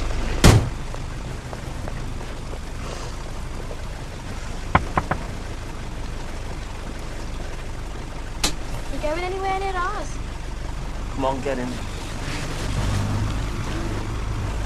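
Rain patters steadily on a car roof.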